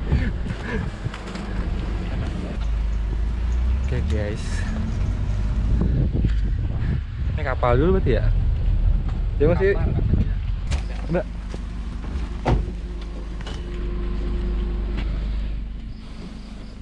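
An engine rumbles low and steady as an open vehicle drives along.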